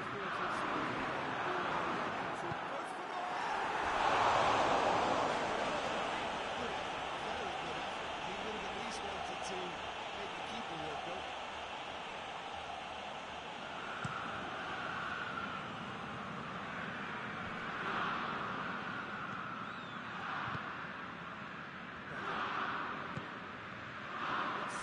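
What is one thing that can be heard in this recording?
A stadium crowd roars steadily, swelling loudly at times.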